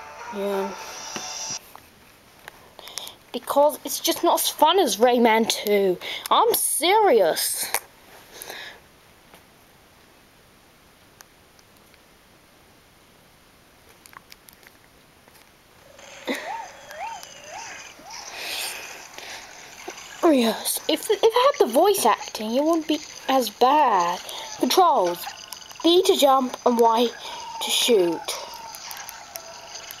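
A handheld game console plays music and sound effects through its small speaker.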